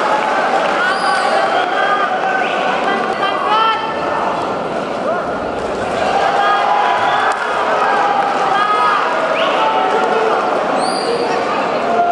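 A referee blows a sharp whistle.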